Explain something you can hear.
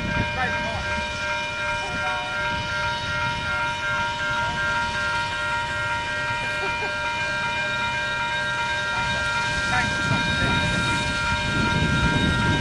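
A steam locomotive rumbles and chuffs as it slowly approaches, growing louder.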